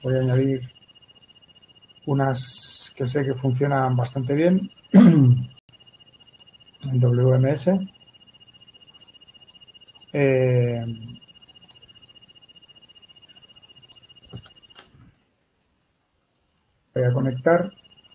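A man speaks calmly into a microphone, explaining in short phrases.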